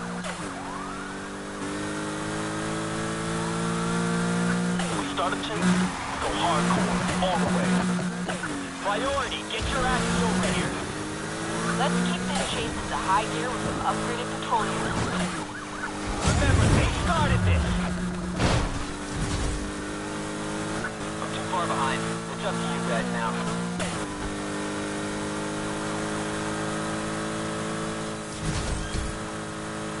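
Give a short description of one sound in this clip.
A sports car engine roars and revs up through the gears.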